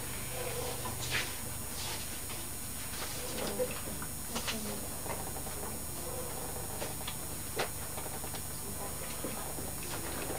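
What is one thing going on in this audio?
A diver breathes in and out through a scuba regulator with a rushing hiss.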